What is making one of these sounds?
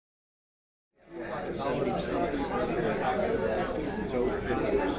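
Many adults chatter at once in a busy room.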